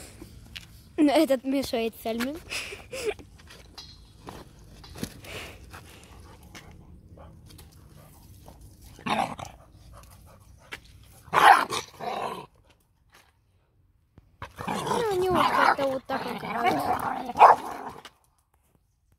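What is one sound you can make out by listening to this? Puppies growl and whine playfully up close.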